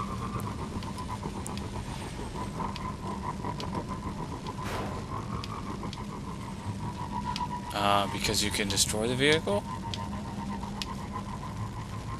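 A hover bike engine hums steadily as it speeds along.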